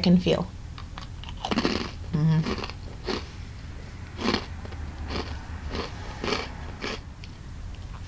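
A woman crunches and chews a cookie.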